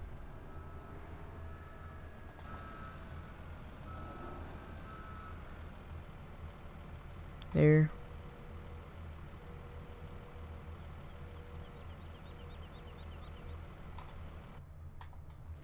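A wheel loader's diesel engine idles with a low steady rumble.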